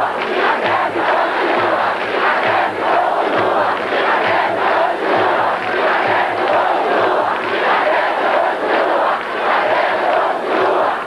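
A large crowd chants loudly in rhythm outdoors.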